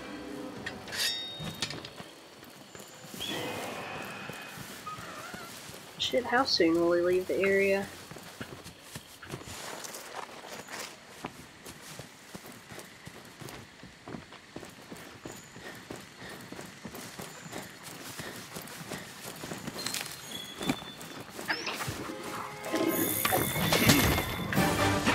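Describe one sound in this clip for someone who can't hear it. Footsteps run through rustling grass.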